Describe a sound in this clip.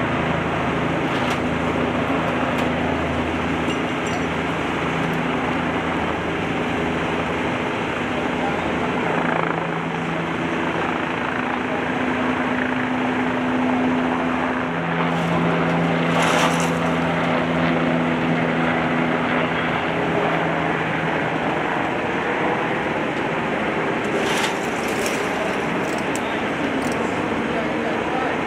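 A crane's engine rumbles steadily nearby.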